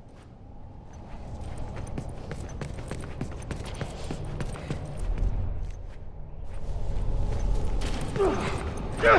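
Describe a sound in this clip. Footsteps tread slowly over a hard floor.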